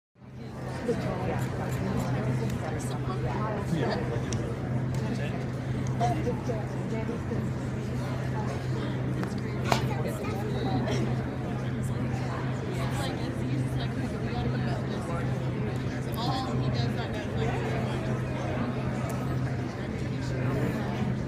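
A crowd of girls and adults chatter in a large echoing hall.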